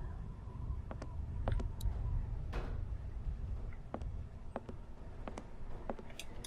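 Footsteps thud slowly on wooden floorboards.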